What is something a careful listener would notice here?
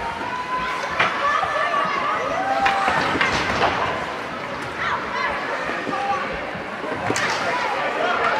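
Hockey sticks clack against the ice.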